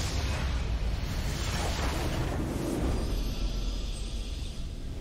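A building in the game explodes with a deep rumble.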